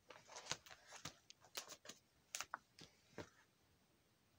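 Plastic binder sleeves crinkle and rustle under a hand.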